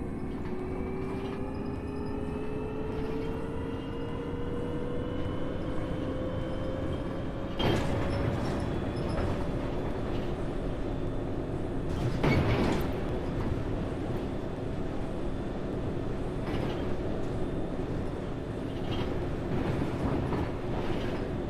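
Tyres roll over a road with a low rumble.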